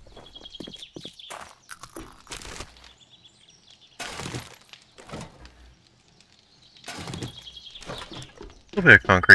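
Footsteps crunch over gravel and rubble.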